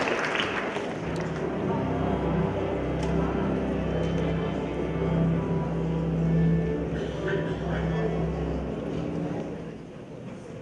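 An orchestra plays a sustained chord.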